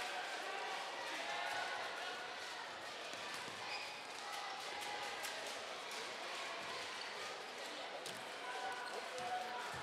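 A large crowd murmurs and cheers in an echoing indoor hall.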